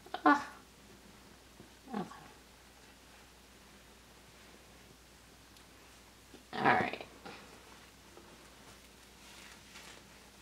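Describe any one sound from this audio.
A disposable nappy crinkles as hands fasten it.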